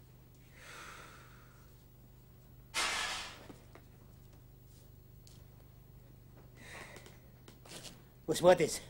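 A man breathes heavily and snorts in his sleep.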